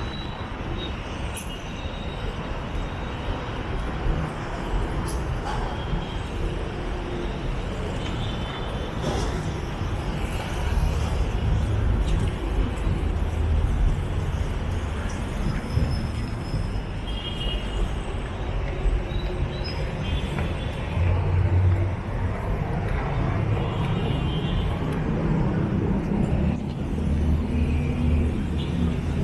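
Footsteps walk steadily along a concrete walkway.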